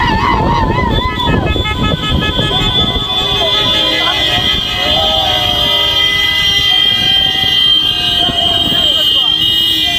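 Car and motorbike engines hum as traffic drives along a road.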